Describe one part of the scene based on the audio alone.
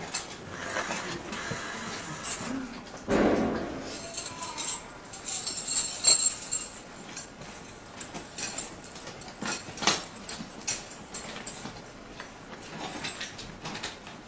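Fabric rustles and shuffles close by.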